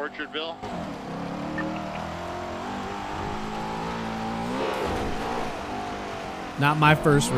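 A car engine roars steadily, its pitch rising and falling as it revs.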